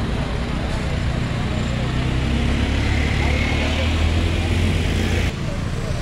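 An SUV engine rumbles as it pulls up.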